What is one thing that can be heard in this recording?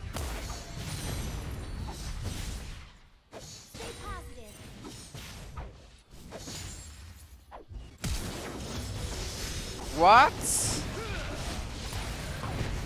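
Fantasy battle sound effects clash and whoosh.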